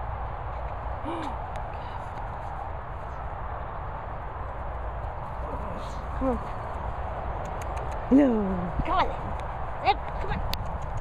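Small dogs yip and whine excitedly while playing.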